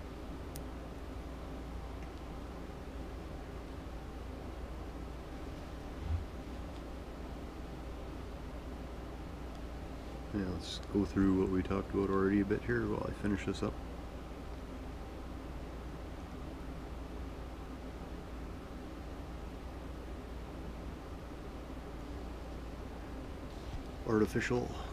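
A needle and thread pull softly through thick fabric.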